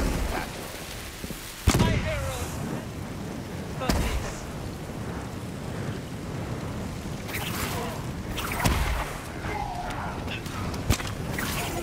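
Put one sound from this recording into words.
Swords clash and slash in a fierce fight.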